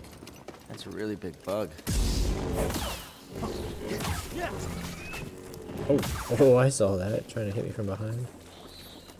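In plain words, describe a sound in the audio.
Creatures screech and snarl during a fight.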